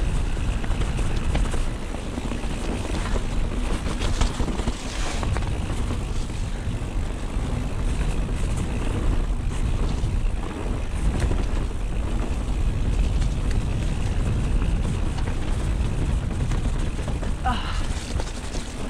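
Mountain bike tyres roll and crunch over a muddy dirt trail.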